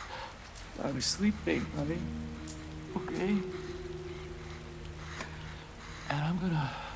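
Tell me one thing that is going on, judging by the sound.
A middle-aged man speaks gently and soothingly.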